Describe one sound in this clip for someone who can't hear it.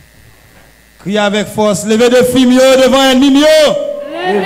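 A woman sings loudly through a loudspeaker in an echoing hall.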